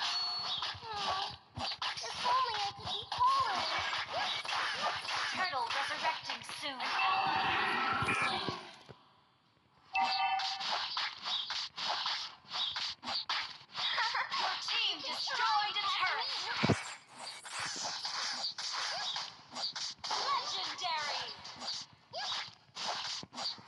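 Video game combat effects clash, zap and whoosh in quick bursts.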